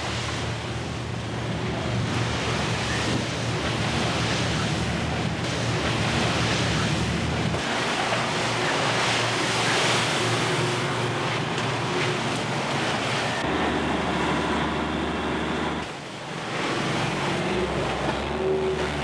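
A ship's engine rumbles low and steadily.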